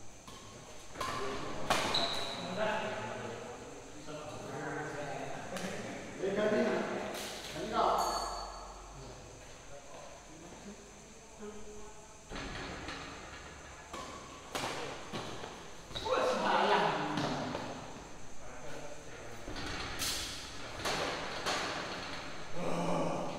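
Badminton rackets smack a shuttlecock back and forth.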